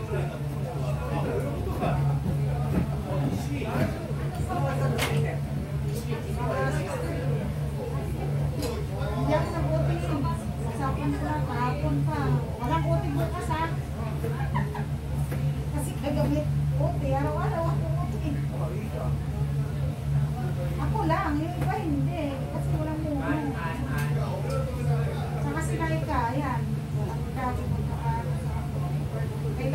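Utensils clink and knock on a counter now and then.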